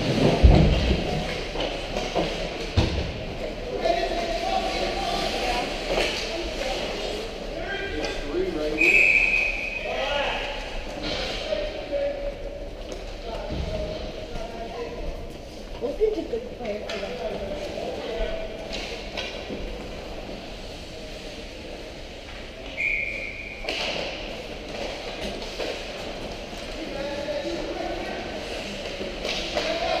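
Young children shout and call out across a large echoing rink.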